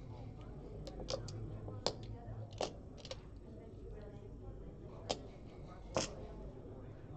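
Game pieces click as they are moved across a board.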